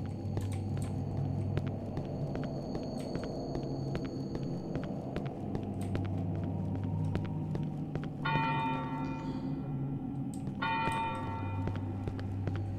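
Footsteps tread steadily on cobblestones.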